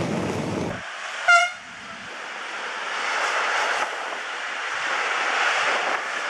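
A freight train rolls past in the distance.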